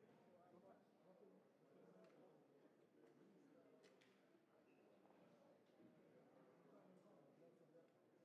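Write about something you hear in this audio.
A man speaks into a microphone in an echoing hall.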